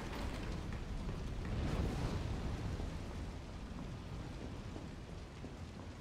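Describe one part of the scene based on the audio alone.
Footsteps run across a gritty floor.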